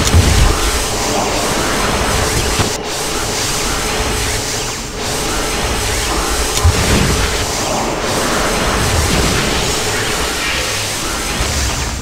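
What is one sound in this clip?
An electric beam crackles and buzzes steadily.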